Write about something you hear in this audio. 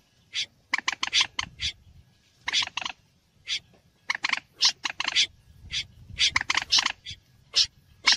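A bird calls in short, harsh bursts again and again.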